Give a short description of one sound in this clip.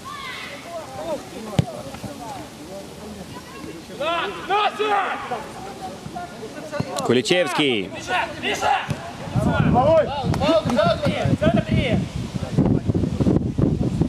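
Men shout to each other outdoors during a football game.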